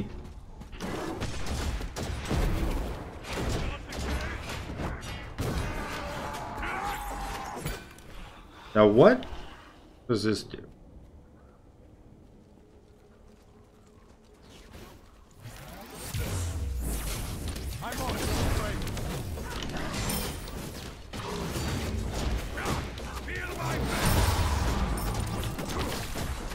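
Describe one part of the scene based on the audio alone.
Fighting sounds with clashing blows and magical blasts play in bursts.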